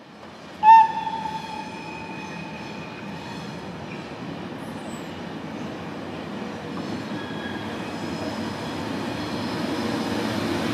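An electric locomotive approaches, its wheels rumbling louder on the rails.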